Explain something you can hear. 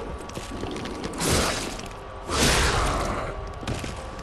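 A sword swings and strikes with a sharp, ringing burst.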